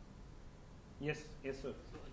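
A man speaks calmly through a microphone in a room.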